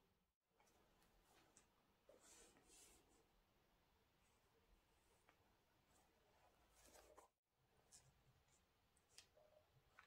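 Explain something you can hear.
Gloved hands handle a pair of sneakers with soft rustling and rubbing.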